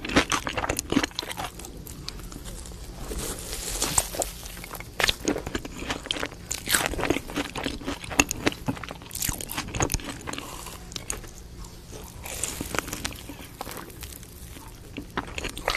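A woman chews crunchy food close to a microphone.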